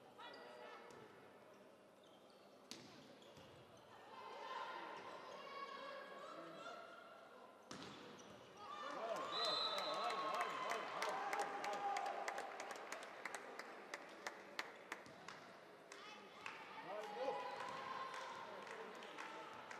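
A crowd cheers and calls out in a large echoing hall.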